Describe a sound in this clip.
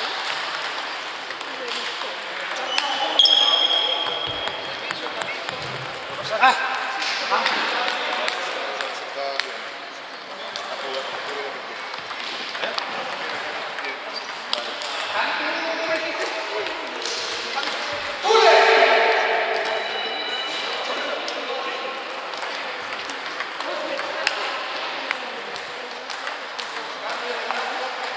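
A ping-pong ball clicks sharply back and forth across a table.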